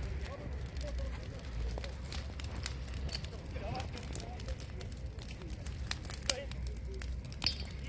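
Flames crackle and pop through dry grass.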